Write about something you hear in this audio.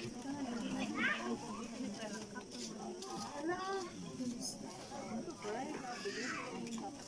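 A crowd of men, women and children chatters all around, outdoors.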